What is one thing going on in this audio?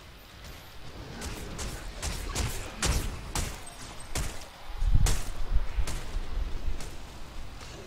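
Energy blasts crackle and boom in quick bursts.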